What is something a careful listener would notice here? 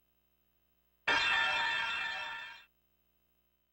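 A bright electronic chime sounds when a game puzzle is completed.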